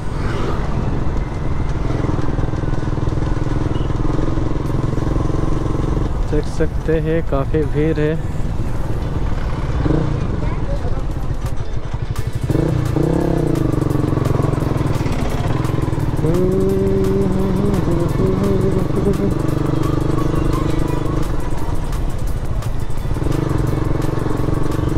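A motorcycle engine hums steadily while riding.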